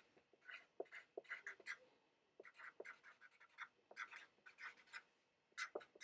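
A marker squeaks in short strokes on a whiteboard.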